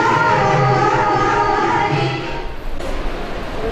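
Ankle bells jingle as a dancer stamps.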